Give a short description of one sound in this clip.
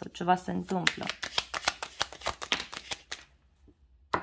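Playing cards riffle and flick as a deck is shuffled.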